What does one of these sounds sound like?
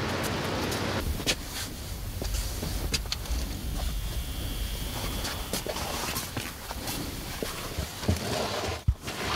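Clothes rustle close by.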